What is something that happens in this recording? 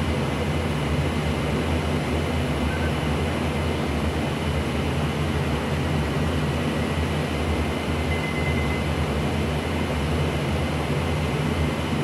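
Wind rushes past an aircraft cockpit.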